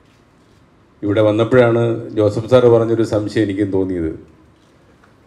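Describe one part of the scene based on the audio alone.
A middle-aged man speaks into a microphone, heard through loudspeakers in a large room.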